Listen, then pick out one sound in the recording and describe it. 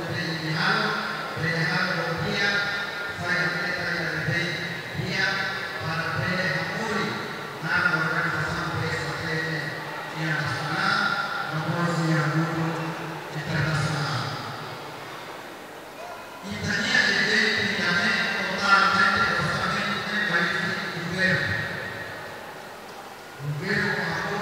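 A middle-aged man speaks steadily into a microphone over a loudspeaker, in an echoing hall.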